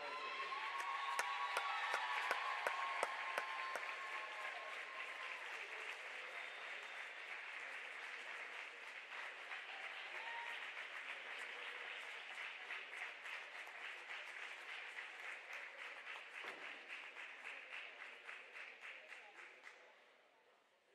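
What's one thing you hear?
A crowd claps steadily.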